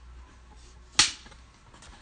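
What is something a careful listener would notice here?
A clapperboard snaps shut.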